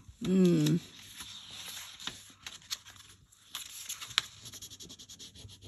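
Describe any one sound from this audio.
Paper rustles and scrapes under hands.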